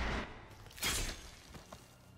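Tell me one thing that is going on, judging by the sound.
A blade strikes a body with a heavy, wet thud.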